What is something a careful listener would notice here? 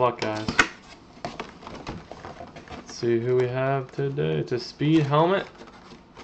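Cardboard flaps are pulled open with a rustle.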